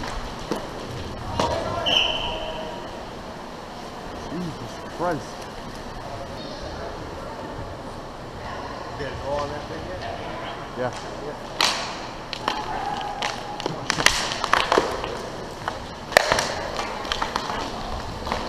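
Skates scrape and carve across ice close by.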